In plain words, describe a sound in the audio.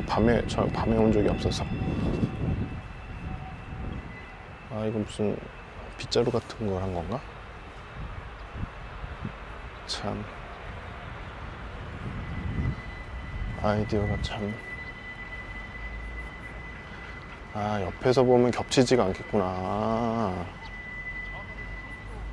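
Wind rumbles across an open field.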